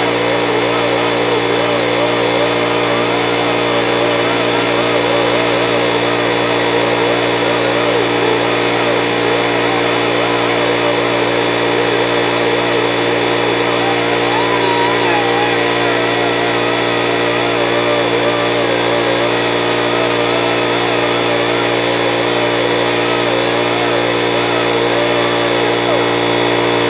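Compressed air hisses steadily from a hose nozzle.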